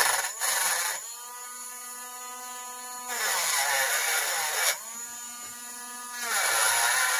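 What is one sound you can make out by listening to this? A small rotary tool whines at a steady high pitch while spinning freely, then winds down.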